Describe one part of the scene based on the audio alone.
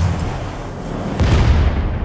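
A large explosion booms with a deep roar.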